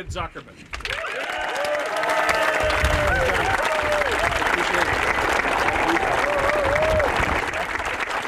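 People in the crowd cheer and whoop.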